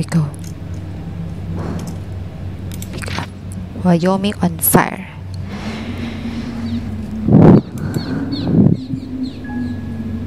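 A young woman talks into a headset microphone with animation.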